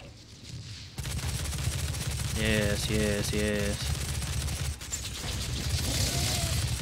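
Guns fire in rapid bursts with heavy booms.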